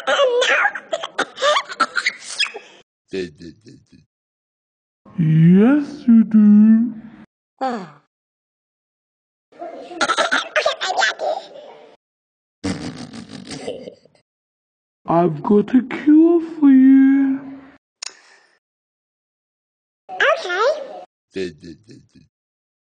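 A cartoon cat talks in a high, sped-up voice.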